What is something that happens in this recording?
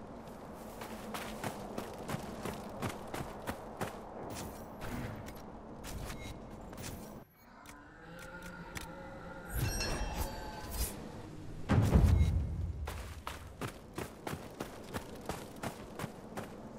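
Armoured footsteps crunch on dirt and gravel at a steady pace.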